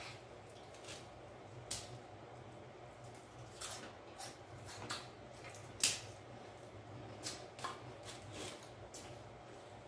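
A woman chews and smacks her lips while eating.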